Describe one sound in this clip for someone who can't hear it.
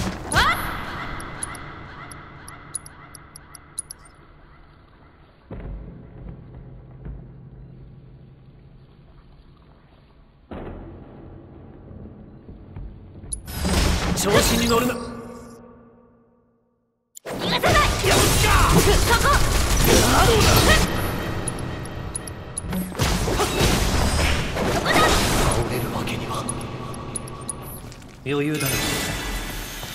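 Swords clash and magic bursts crackle in a noisy fight.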